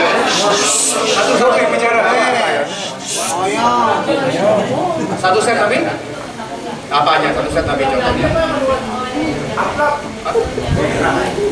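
A middle-aged man speaks with animation into a microphone, heard through loudspeakers.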